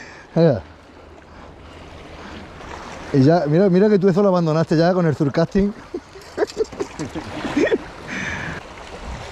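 Small waves lap and splash against rocks.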